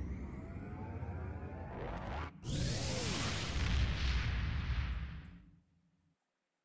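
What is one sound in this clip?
A deep, roaring whoosh sweeps past, then fades away.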